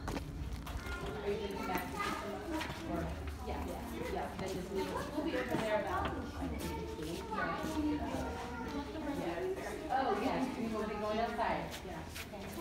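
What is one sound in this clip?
A young boy talks quietly.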